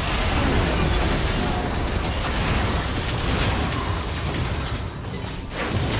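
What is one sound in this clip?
Game spell effects crackle and boom during a fight.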